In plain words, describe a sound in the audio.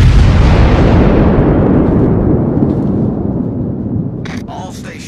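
Heavy naval guns boom and rumble away.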